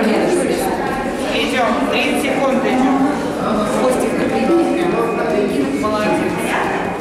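A woman speaks calmly, giving instructions close by.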